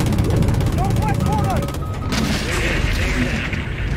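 A cannon fires rapid, thudding shots.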